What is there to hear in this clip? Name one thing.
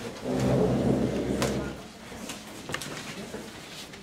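Several men talk among themselves in a room.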